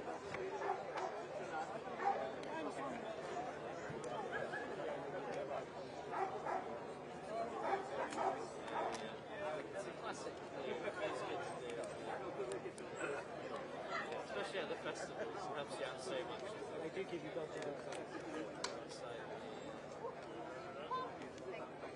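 A large audience of men and women chatters all around in a big echoing hall.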